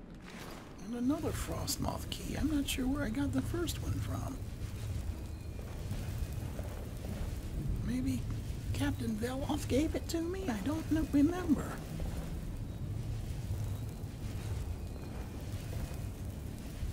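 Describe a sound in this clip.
Magic flames crackle and hum steadily.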